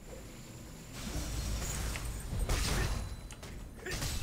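A magic spell bursts with a rushing whoosh.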